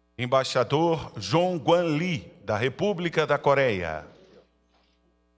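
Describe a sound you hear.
A man speaks loudly and clearly, announcing through a loudspeaker.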